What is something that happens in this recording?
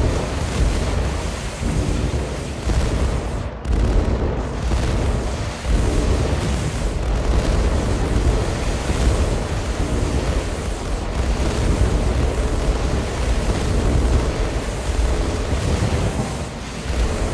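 Tank cannons fire in rapid volleys in a video game.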